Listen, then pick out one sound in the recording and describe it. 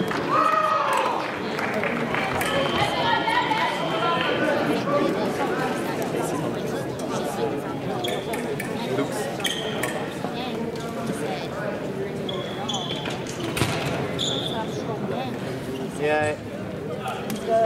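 Many voices murmur and chatter in a large echoing hall.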